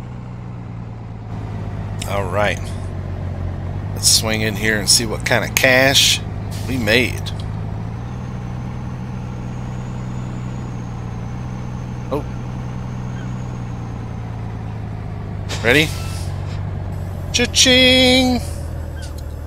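A truck engine rumbles steadily at idle.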